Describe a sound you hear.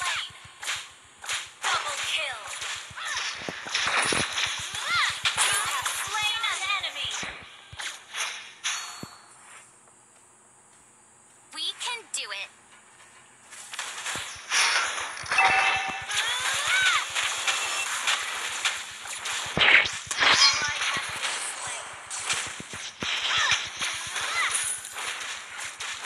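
Game characters clash with bursts of magic blasts and hits.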